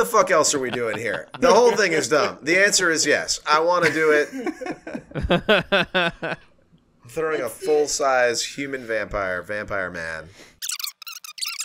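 Several men laugh loudly over an online call.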